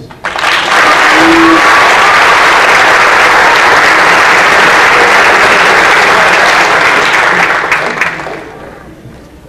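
An audience applauds loudly in a large hall, and the applause fades out at the end.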